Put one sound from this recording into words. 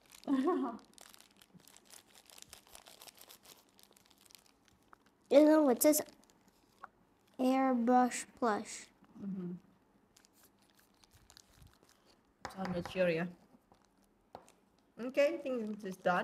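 Plastic gloves rustle and crinkle.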